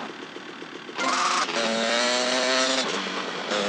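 A motorbike engine starts and revs loudly.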